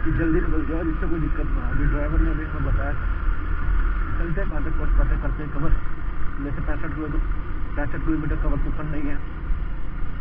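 Tyres crunch over a gravel road.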